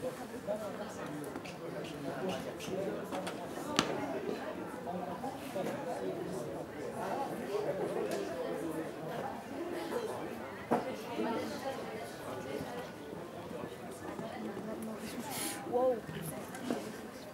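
Spectators chatter in the background.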